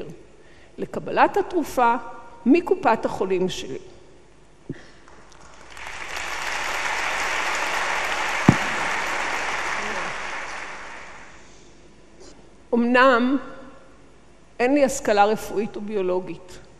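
An elderly woman speaks animatedly through a microphone in a large hall.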